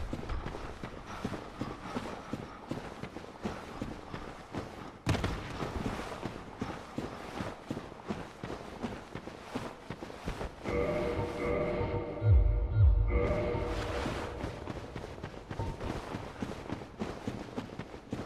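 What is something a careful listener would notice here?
Armoured footsteps crunch quickly over rough ground.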